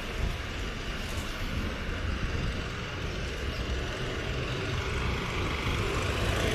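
A jeepney engine idles and rumbles close by.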